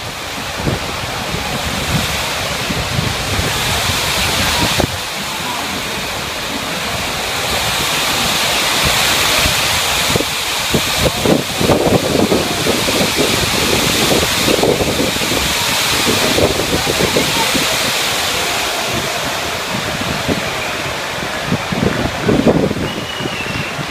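Wind gusts and buffets the microphone.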